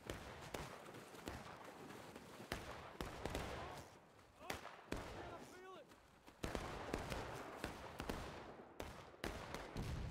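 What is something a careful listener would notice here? Gunshots crack repeatedly, near and far.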